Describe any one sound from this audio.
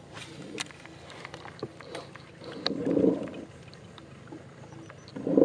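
Water laps and splashes softly against a small boat moving through a pond.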